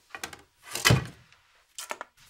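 Wooden sticks knock against each other in a holder.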